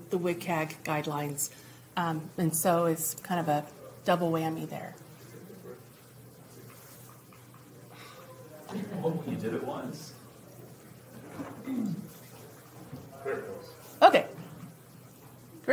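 A woman speaks with animation through a microphone, as if presenting to a room.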